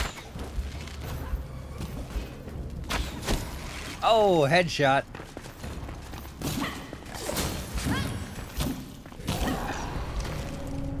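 A sword clangs against a creature in a fight.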